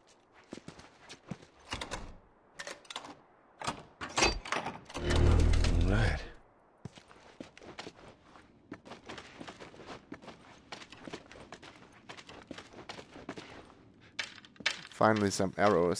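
Footsteps crunch over debris and broken glass.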